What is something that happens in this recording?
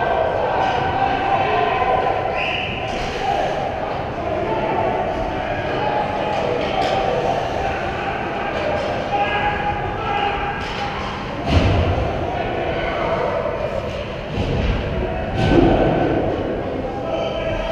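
Skates scrape across ice in a large echoing hall.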